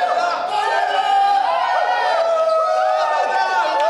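A young woman screams excitedly.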